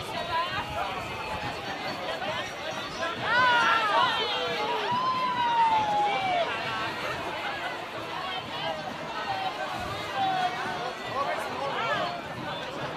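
A crowd of men and women chatters and calls out loudly outdoors.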